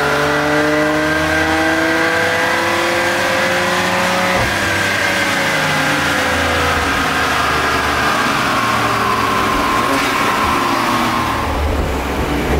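A car engine revs hard at high speed, its roar rising and then falling.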